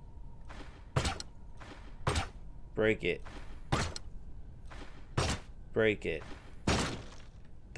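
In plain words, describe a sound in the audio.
Short sharp hits and clashes of a fight sound in quick bursts.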